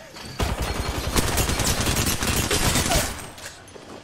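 A rapid burst of gunfire rattles loudly.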